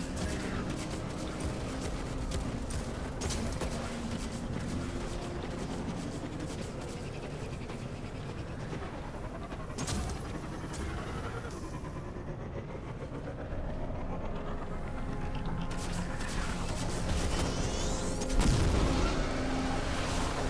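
A hover bike engine hums steadily as it speeds along.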